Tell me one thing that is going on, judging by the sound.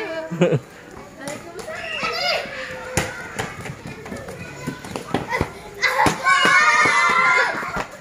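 Bare feet patter quickly on hard ground.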